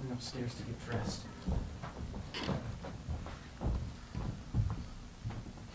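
Footsteps thud across a wooden stage.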